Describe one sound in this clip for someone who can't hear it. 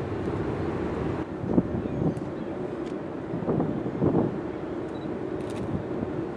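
A distant ship's engine rumbles low and steadily across the water.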